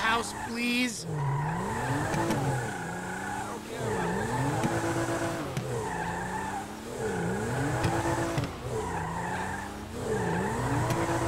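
A car engine revs up and down over and over.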